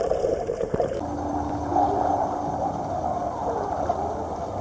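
Water splashes as a woman surfaces and swims.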